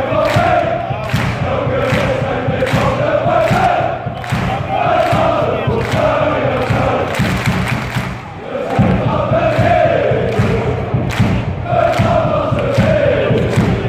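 A crowd of football supporters chants in unison in a stadium.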